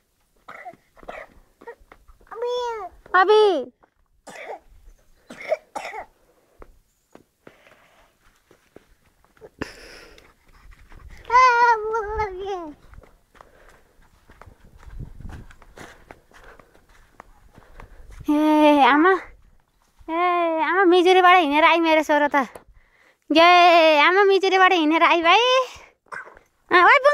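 A toddler babbles and calls out in a high voice close by.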